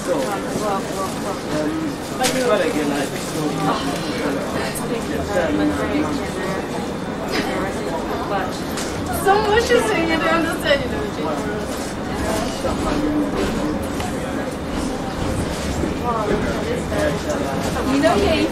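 Adult voices chatter nearby in a tram carriage.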